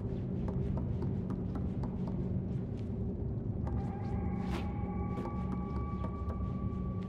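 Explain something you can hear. Small footsteps patter across wooden floorboards.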